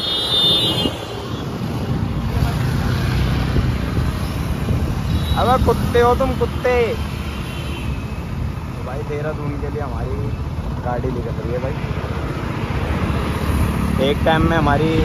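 Motorcycle engines rumble steadily nearby.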